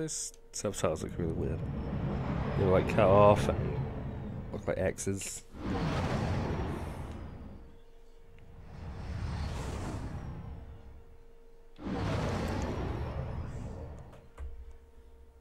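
A spaceship engine roars and whooshes past in repeated waves.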